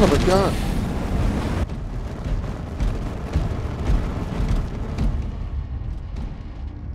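A flamethrower roars steadily with a low rumbling whoosh.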